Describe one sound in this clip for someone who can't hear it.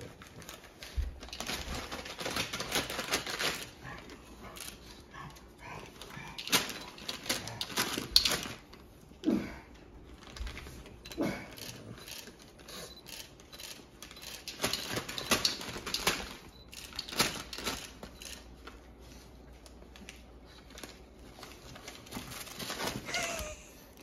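Plush toys rustle and crinkle as a dog noses them.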